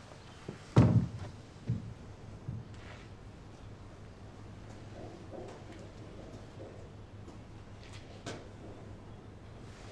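Footsteps thud slowly across a wooden floor.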